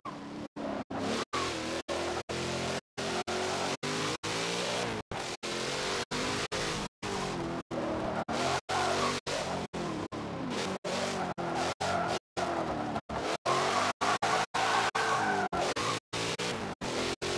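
Tyres squeal through tight turns.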